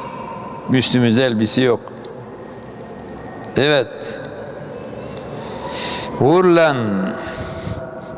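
An elderly man chants in a melodic voice through a microphone, in bursts with pauses.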